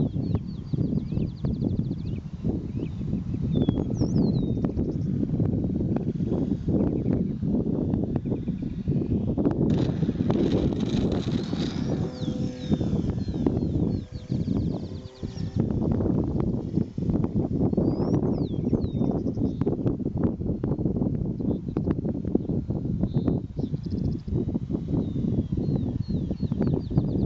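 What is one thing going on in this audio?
Strong wind gusts and rumbles outdoors across open ground.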